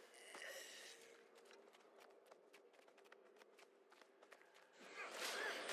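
Footsteps tap quickly on stone.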